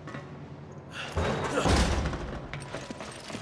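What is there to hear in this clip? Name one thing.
A heavy metal door creaks and grinds open.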